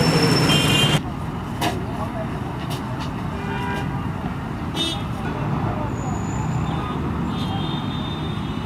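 Traffic hums steadily on a road outdoors.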